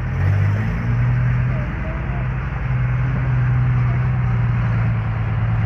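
A heavy truck engine rumbles and idles loudly nearby.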